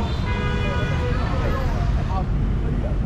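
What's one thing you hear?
A motorbike horn honks briefly.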